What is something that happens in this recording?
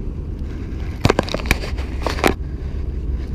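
A fishing reel clicks and rattles briefly.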